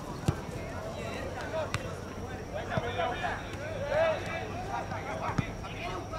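Players shout to each other across an open outdoor field.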